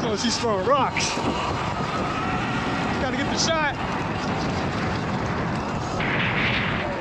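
Bicycle tyres crunch and rattle over loose gravel.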